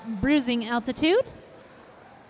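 A young woman shouts loudly nearby.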